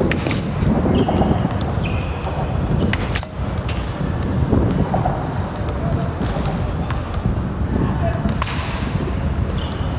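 A metal bat cracks against a baseball several times.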